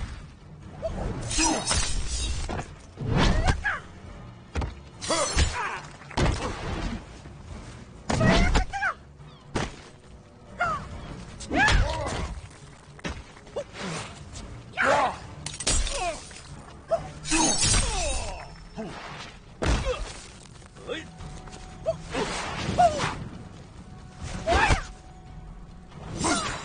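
Fighters grunt and shout with effort.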